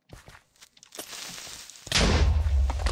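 A sharp hiss builds up.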